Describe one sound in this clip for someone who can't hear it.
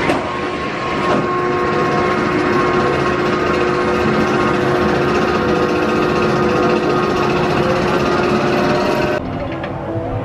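A lift chain whirs and hums steadily as it hauls a coaster train uphill.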